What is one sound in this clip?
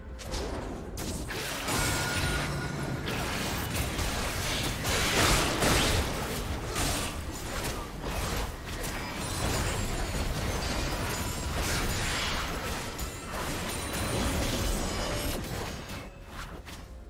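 Game spells blast and weapons clash in a busy fight.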